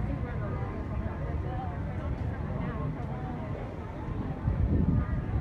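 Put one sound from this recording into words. A crowd chatters in the open air.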